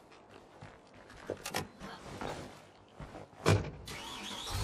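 A car door opens and thumps shut.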